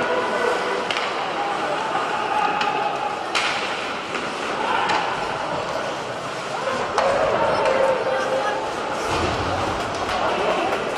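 Hockey sticks knock sharply against a puck.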